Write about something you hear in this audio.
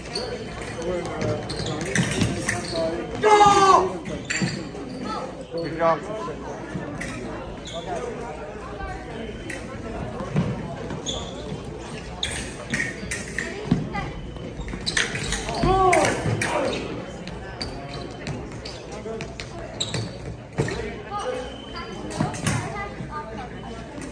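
Fencers' feet stamp and shuffle on a hard floor in an echoing hall.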